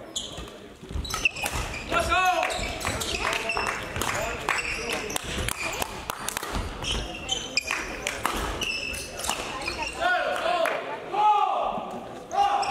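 Shoes squeak on a sports floor.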